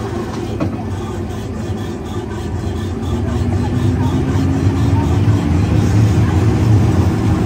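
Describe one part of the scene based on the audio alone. A ride vehicle rumbles steadily along a track, growing louder.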